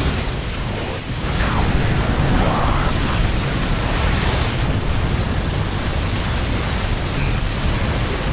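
Laser weapons zap and crackle in a battle.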